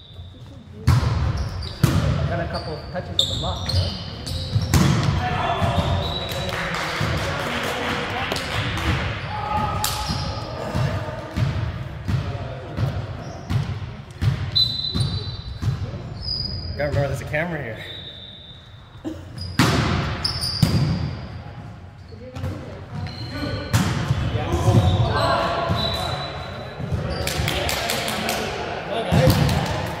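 Young men shout and call out to each other across a large echoing gym.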